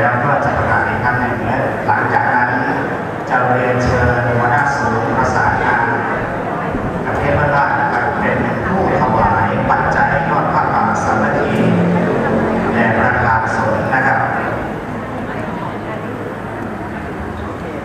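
A large crowd of men and women chatters all around in a big echoing hall.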